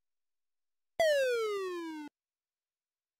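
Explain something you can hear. A falling electronic tone sounds.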